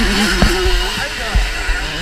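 Another dirt bike engine buzzes nearby.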